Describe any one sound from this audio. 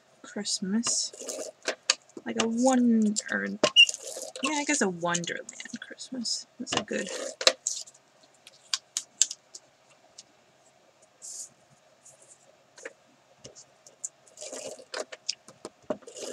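A paper punch clunks as it cuts through paper.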